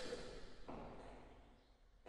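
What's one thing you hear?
A hand slaps someone.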